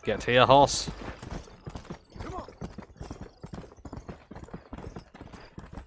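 A horse's hooves gallop over dirt.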